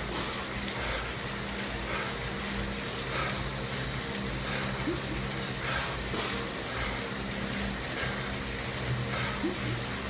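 A man breathes heavily close by.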